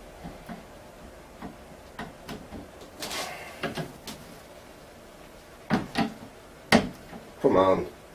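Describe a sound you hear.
A screwdriver clicks and scrapes against a speaker cabinet.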